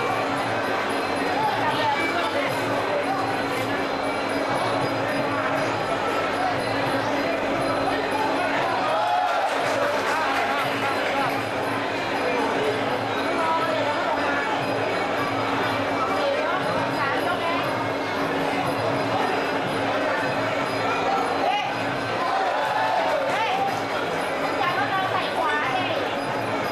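A large crowd cheers and shouts loudly in a big arena.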